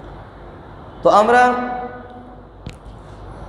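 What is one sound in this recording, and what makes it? A man chants in a long, drawn-out tone through a microphone, echoing in a large hall.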